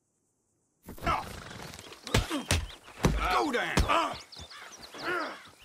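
A man speaks roughly, close by.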